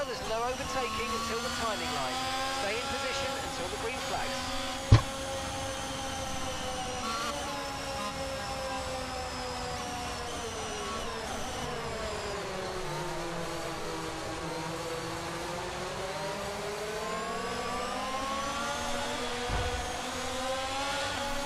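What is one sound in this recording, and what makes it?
A racing car engine hums steadily, its pitch dipping and rising.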